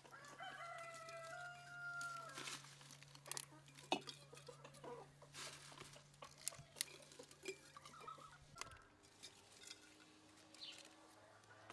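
Glass jars clink.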